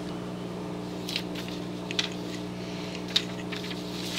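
A small screwdriver scrapes and clicks on a screw.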